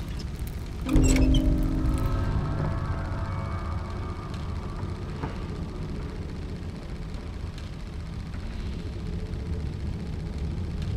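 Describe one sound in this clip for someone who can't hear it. A machine starts with a low rumbling hum.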